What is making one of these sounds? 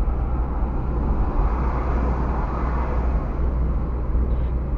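A van passes close by with a rushing sound.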